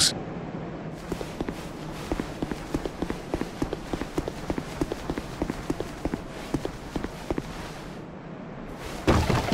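Quick footsteps patter on grass and stone.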